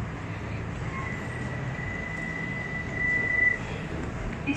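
Train doors beep steadily.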